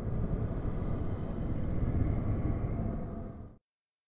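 A man growls through clenched teeth with strain.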